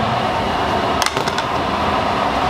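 A ceramic bowl clinks on a metal counter.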